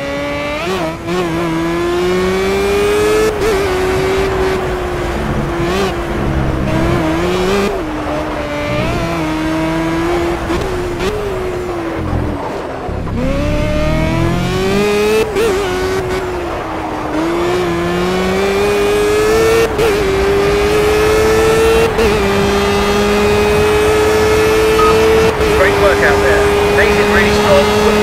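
A high-revving open-wheel racing car engine roars, shifting up and down through the gears.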